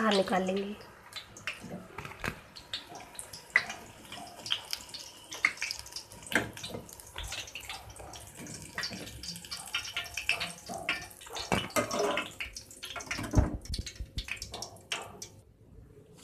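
A metal ladle clinks and scrapes against a pan.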